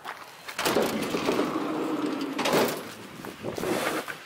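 A van door swings open.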